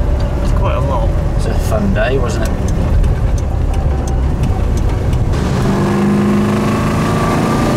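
A car engine rumbles steadily from inside the moving car.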